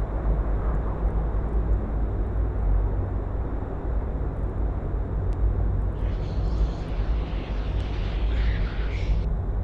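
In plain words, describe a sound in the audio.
A deep, steady rumble drones from a spaceship.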